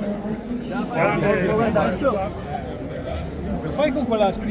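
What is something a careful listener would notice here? A middle-aged man laughs and speaks with animation close by.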